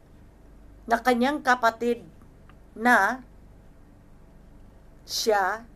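A middle-aged woman speaks calmly into a microphone in short phrases.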